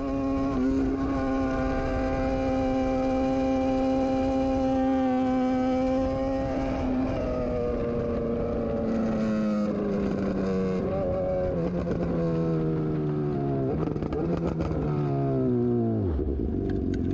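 A motorcycle engine drones loudly, then its pitch drops as it slows down.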